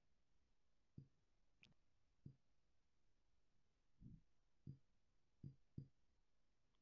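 Soft electronic clicks sound as buttons on a panel are pressed.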